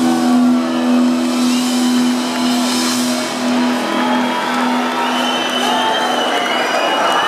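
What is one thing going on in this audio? An electric guitar chord rings out loudly through amplifiers and fades.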